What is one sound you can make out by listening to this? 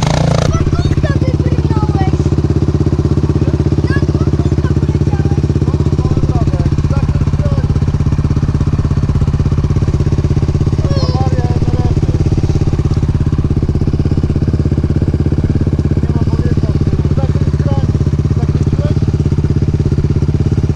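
A small motorbike engine idles steadily with a rapid putter close by.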